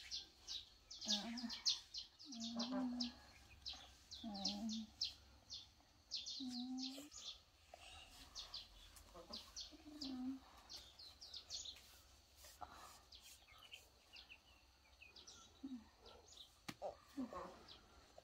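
A young woman sobs and cries nearby.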